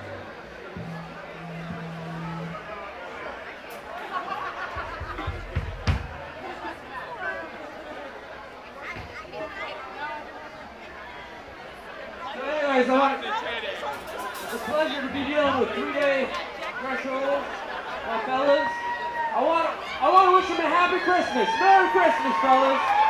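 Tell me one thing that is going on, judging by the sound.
A live band plays music through loudspeakers in a room.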